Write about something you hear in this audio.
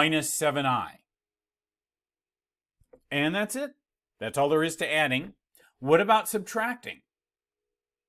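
A middle-aged man speaks calmly and clearly into a close microphone, in short phrases.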